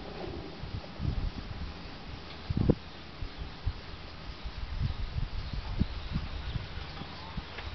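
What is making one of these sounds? Metal objects knock and clank as a man handles them.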